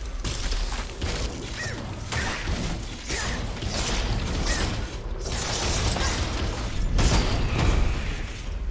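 Heavy weapons clash and strike in a fight.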